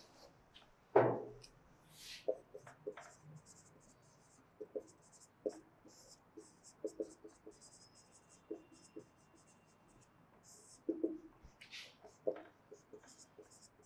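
A marker squeaks and scratches across a whiteboard in short strokes.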